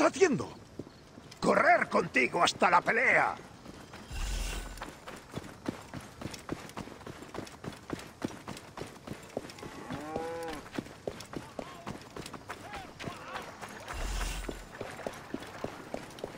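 Footsteps run quickly over sandy ground.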